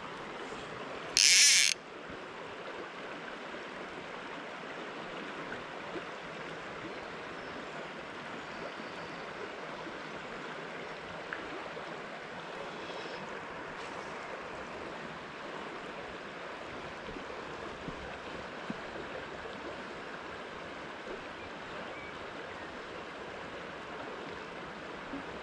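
A river flows and babbles steadily outdoors.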